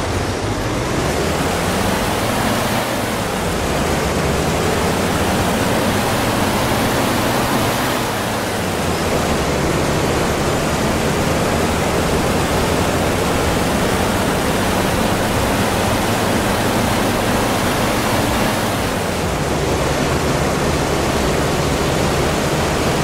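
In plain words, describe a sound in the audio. A bus engine hums and rumbles steadily while driving.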